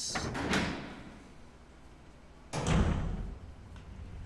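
A heavy door thuds shut.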